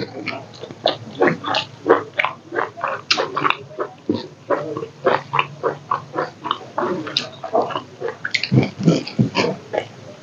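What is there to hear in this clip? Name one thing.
A man chews food noisily and smacks his lips close to a microphone.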